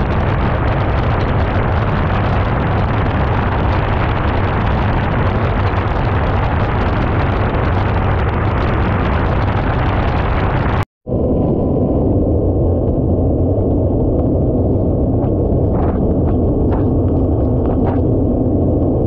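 Water sprays and splashes against a hull.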